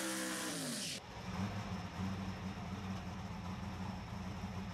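A race car engine rumbles low and steady, heard from inside the car.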